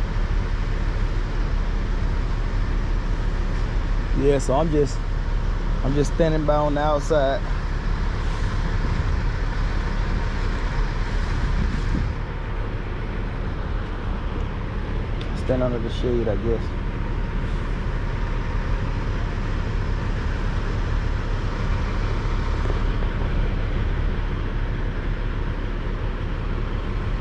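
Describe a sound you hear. A crane's diesel engine rumbles steadily nearby.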